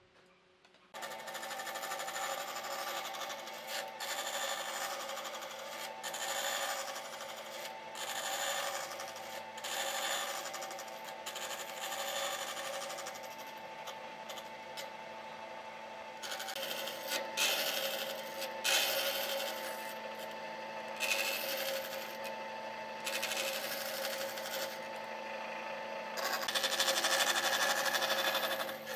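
A band saw runs, cutting through a wooden board.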